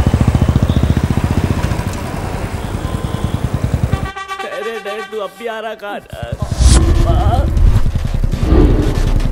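A motorcycle engine idles with a deep, rapid thump.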